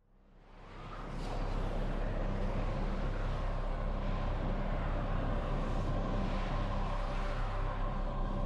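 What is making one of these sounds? A spaceship's engine hums low and steady, swelling up at first.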